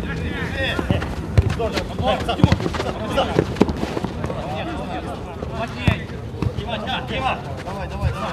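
A football thumps off players' feet.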